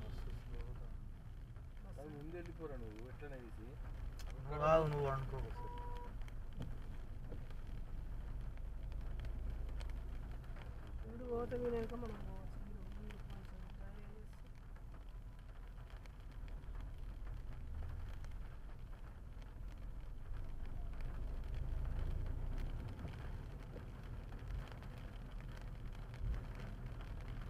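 Raindrops patter on a car windscreen.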